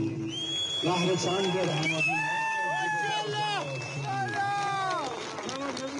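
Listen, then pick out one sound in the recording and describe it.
A middle-aged man speaks loudly and with passion through a microphone outdoors.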